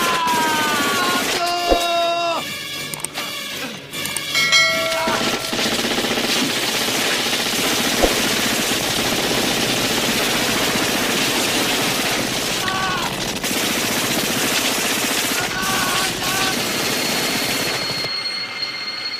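Automatic rifles fire in rapid bursts.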